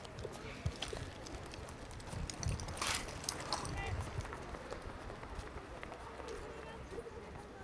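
Feet shuffle and stamp on pavement as dancers run off.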